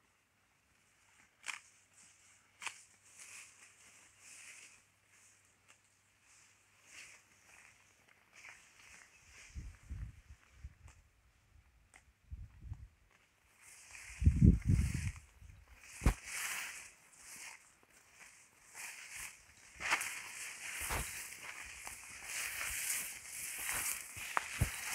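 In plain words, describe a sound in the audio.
Tall grass swishes and rustles against something moving through it.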